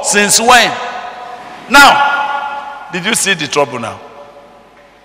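An elderly man preaches loudly and with animation through a microphone in an echoing hall.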